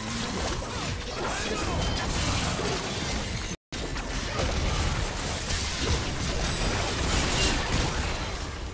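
Fantasy fight effects whoosh, clash and crackle in quick bursts.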